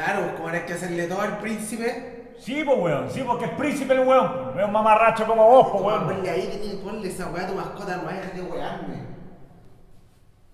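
A young man speaks with animation nearby.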